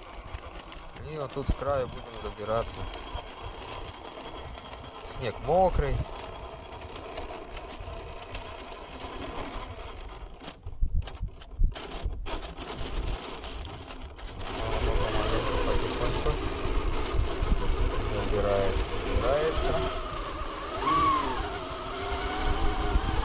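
Tyres crunch and scrape through snow.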